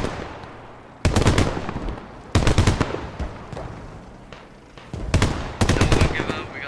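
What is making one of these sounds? A tank's cannon fires with a loud boom.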